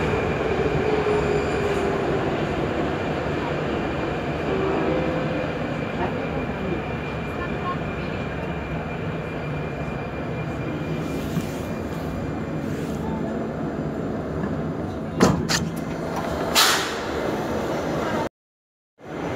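An underground train hums and rumbles steadily.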